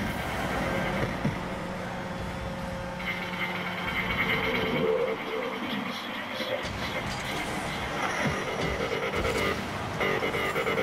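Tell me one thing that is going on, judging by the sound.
A video game car's engine hums and boosts.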